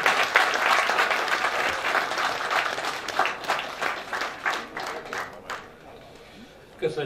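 A seated audience applauds.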